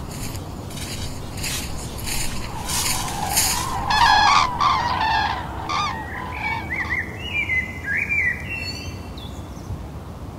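Birds chirp and call.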